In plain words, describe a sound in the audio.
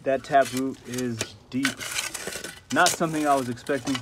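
A spade scrapes and digs into soil.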